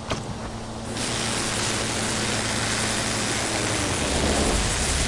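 A welding torch hisses and crackles steadily.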